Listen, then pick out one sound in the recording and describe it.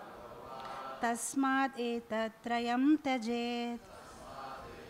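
A woman sings into a microphone in a melodic, sustained voice.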